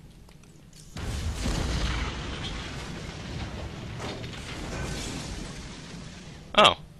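An explosion booms and rumbles away.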